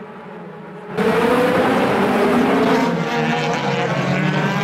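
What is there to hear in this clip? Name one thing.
Racing cars roar past at high speed.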